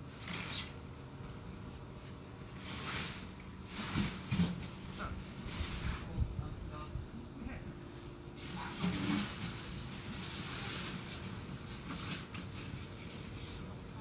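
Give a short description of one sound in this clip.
Wind rustles through tree leaves outdoors.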